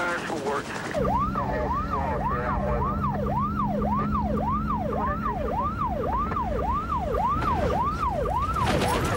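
A police siren wails rapidly up and down, close by.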